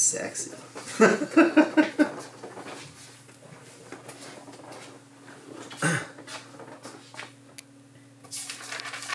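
A man talks casually close to a microphone.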